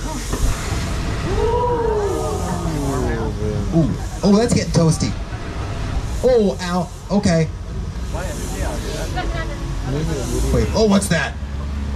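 Gas flames burst with loud whooshes.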